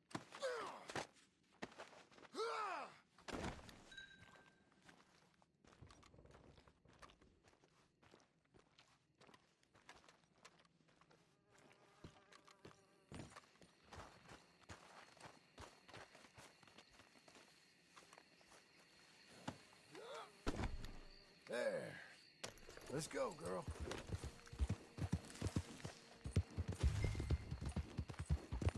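Footsteps thud on the ground.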